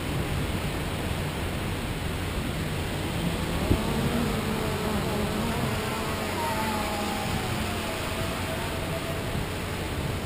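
Waves wash onto a beach nearby.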